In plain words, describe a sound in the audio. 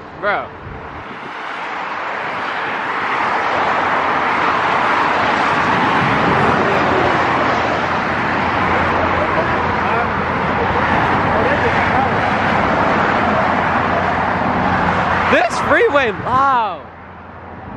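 Highway traffic roars past steadily outdoors.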